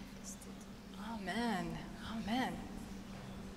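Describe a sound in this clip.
A woman sings through a microphone in a large echoing hall.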